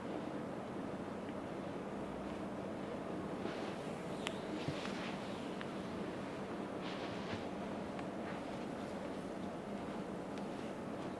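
Hands rub and slide softly over oiled skin.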